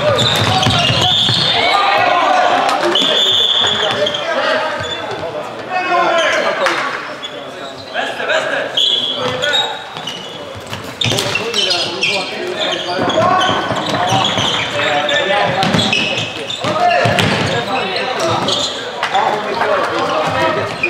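Sneakers squeak sharply on a hard indoor floor.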